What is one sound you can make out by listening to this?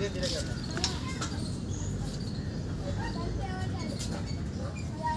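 A metal seesaw creaks and knocks.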